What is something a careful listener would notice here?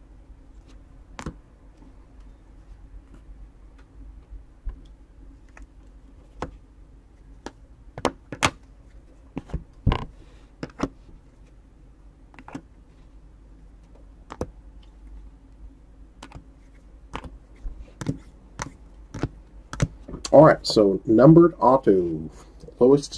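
Hard plastic card cases click and clack against each other as they are handled.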